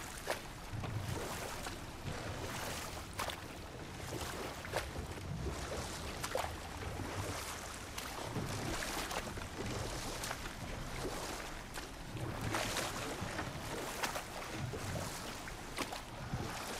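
Water washes and ripples against a small wooden boat.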